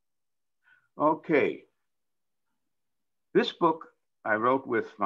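An elderly man speaks calmly over a microphone in short phrases.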